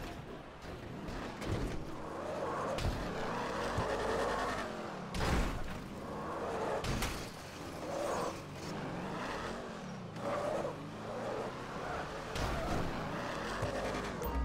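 A car engine revs as a car speeds along.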